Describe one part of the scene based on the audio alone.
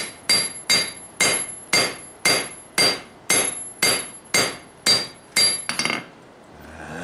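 A hammer rings sharply on hot metal against an anvil in a steady rhythm.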